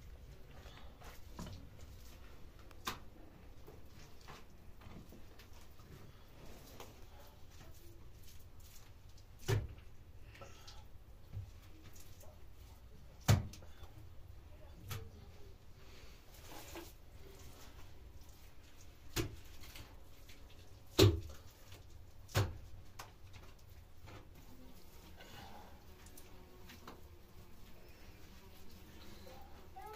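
A man scrapes and rubs plaster on a wall.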